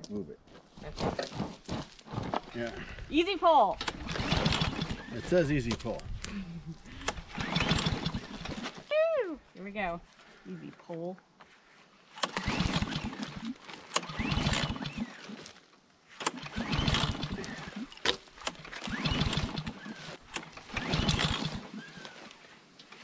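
A pull cord on a small engine is yanked again and again, making the engine sputter briefly.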